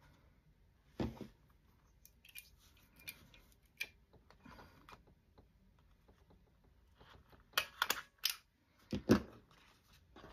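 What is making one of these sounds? A hand tool clicks as it punches through card.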